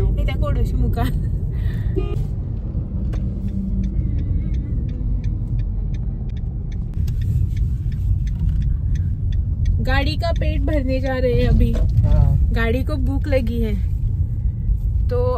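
A car engine hums steadily with road noise inside the car.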